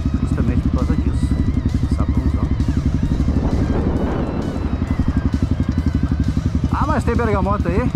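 A motorcycle engine chugs steadily up close.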